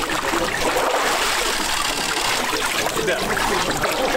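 Water splashes as a man pours it over himself.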